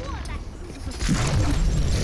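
Gunfire and blasts burst out loudly.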